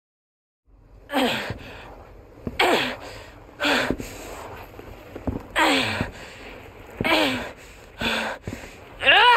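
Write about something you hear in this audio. A man speaks in a strained, pained voice close by.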